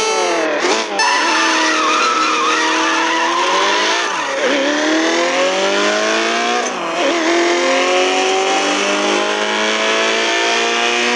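A car engine accelerates hard, rising in pitch through the gears.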